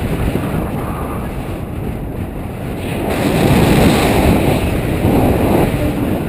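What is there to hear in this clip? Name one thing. Wind rushes and buffets loudly against a close microphone.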